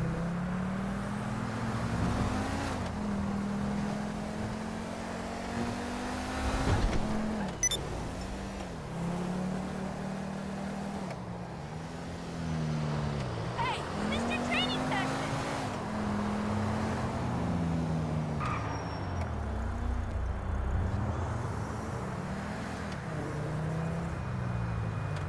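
A sports car engine revs up and shifts through its gears.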